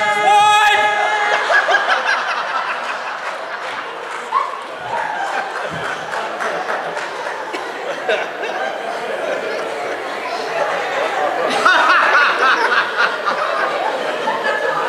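An audience laughs and cheers.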